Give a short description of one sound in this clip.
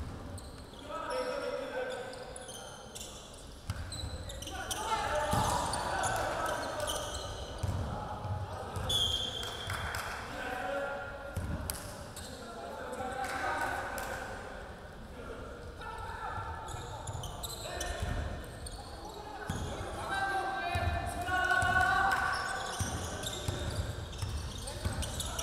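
Sneakers squeak on the hardwood floor.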